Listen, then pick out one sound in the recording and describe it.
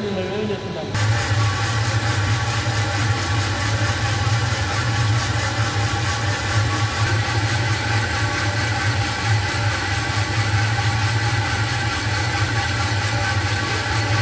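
Coffee beans rattle and rustle as they tumble in a drum.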